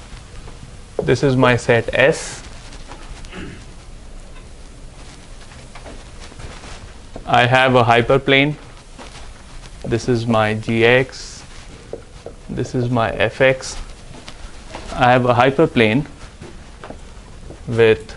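A man lectures, speaking calmly in short bursts.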